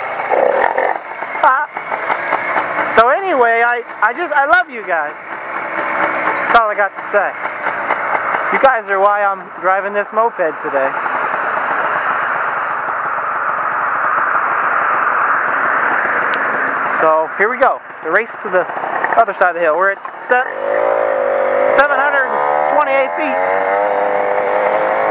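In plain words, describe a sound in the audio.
A small motorcycle engine hums and revs.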